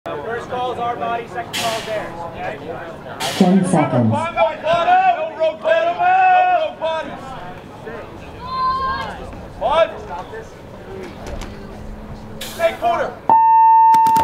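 Young men talk and shout with excitement nearby.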